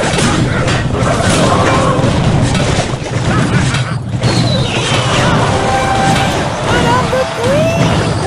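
Game battle sounds clash and explode.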